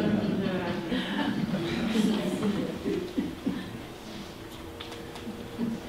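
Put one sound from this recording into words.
A middle-aged man speaks calmly to an audience in a room with a slight echo.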